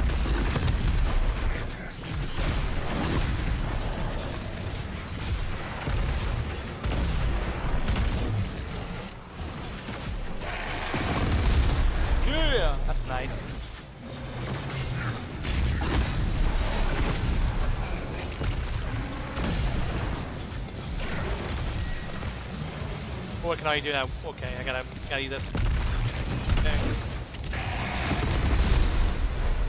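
A man talks into a nearby microphone.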